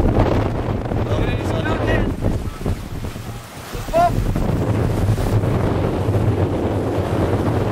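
Water rushes and splashes against a sailing boat's hull.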